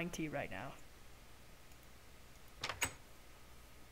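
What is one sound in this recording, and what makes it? A wooden door knocks into place with a short thud.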